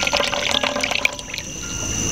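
Tea pours from a clay teapot into a cup.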